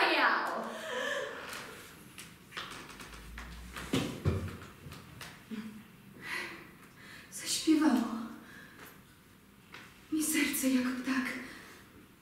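A young woman speaks quietly and hesitantly.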